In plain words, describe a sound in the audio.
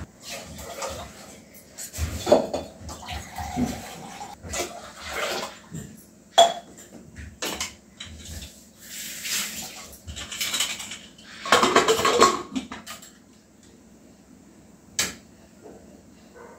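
Metal pots and lids clink and clatter.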